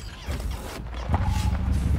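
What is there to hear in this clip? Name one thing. A motorcycle engine rumbles.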